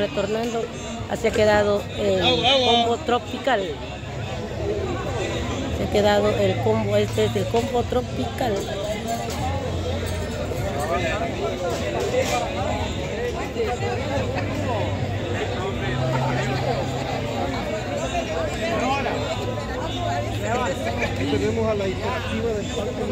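A crowd of men and women talk over one another nearby, outdoors.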